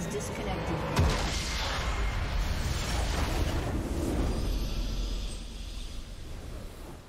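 A triumphant fanfare swells and then fades.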